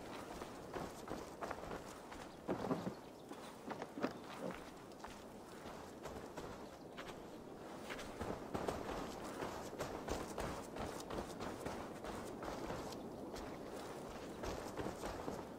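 Footsteps crunch softly on grass and dirt.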